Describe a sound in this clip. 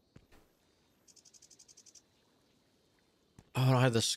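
Footsteps tap quickly on stone paving.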